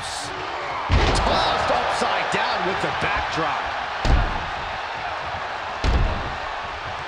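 Heavy thuds of bodies slamming onto a wrestling mat ring out now and then.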